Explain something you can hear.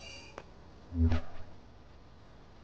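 A soft electronic click and thud sound once.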